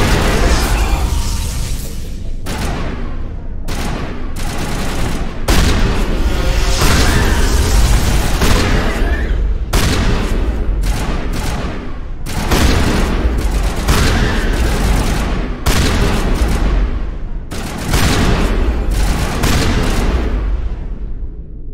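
Guns fire in rapid bursts and blasts.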